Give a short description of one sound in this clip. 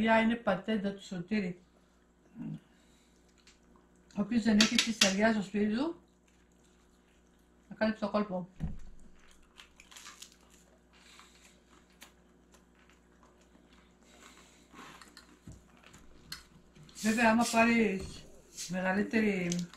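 Cutlery clinks and scrapes on plates.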